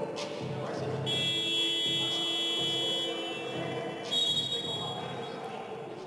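Sneakers squeak sharply on a hard court in a large echoing hall.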